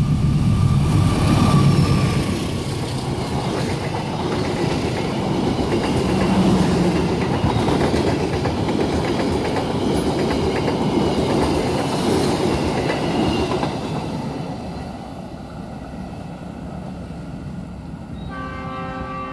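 Train wheels clatter rhythmically over the rail joints.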